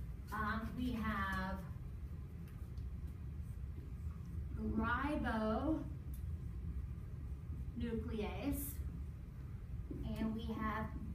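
A young woman speaks calmly and clearly, pausing between phrases.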